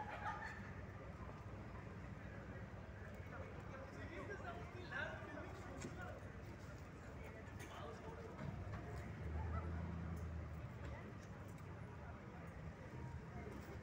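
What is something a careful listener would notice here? Men and women talk nearby outdoors.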